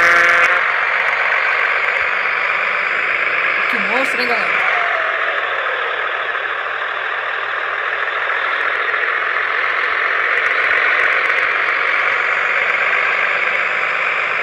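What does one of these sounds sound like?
A truck engine hums steadily, rising and falling as it speeds up and slows down.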